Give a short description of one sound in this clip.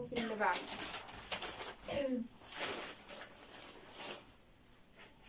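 Cardboard rustles as things are taken from a box.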